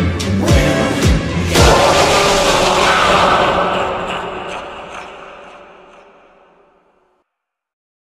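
A loud, harsh electronic screech blares, then slowly fades away.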